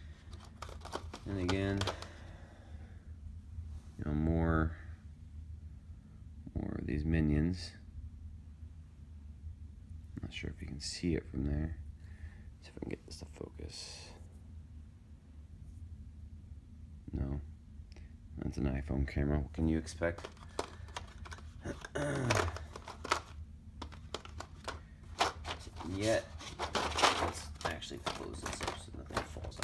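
Small plastic pieces click and rattle as they are handled.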